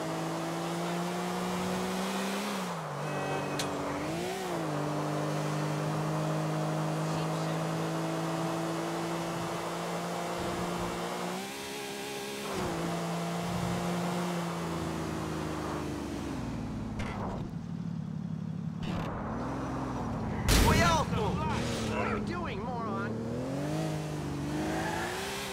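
A car engine hums steadily and shifts pitch as it revs up and down.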